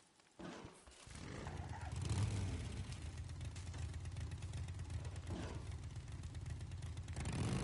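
Motorcycle engines rumble steadily as the bikes ride off.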